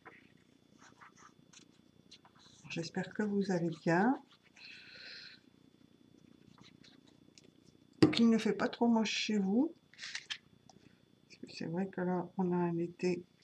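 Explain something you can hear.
Paper rustles softly as it is handled and folded.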